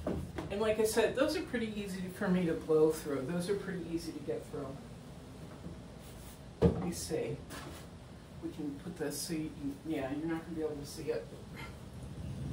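A wooden canvas frame knocks and scrapes against a wall.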